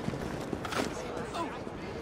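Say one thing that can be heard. Footsteps patter quickly across cobblestones.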